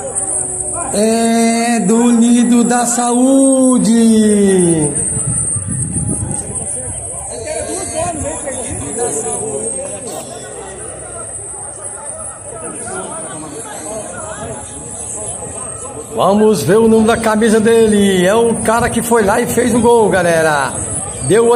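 A man shouts loudly and drawn out nearby.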